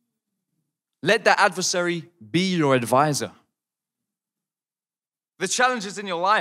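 A young man speaks calmly into a microphone, with pauses between phrases.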